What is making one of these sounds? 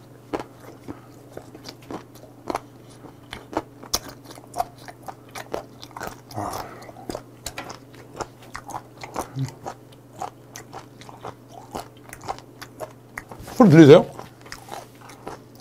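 A man chews food loudly and smacks his lips close to a microphone.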